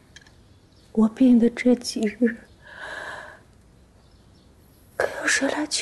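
A young woman speaks weakly and tearfully up close.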